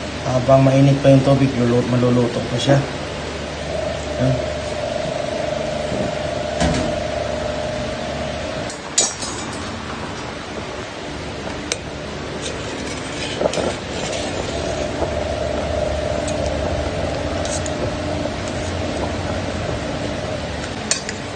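Water simmers and bubbles in a pot.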